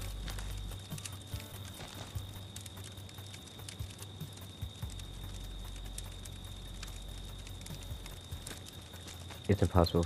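A campfire crackles softly nearby.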